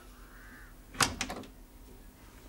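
A wooden door opens with a click.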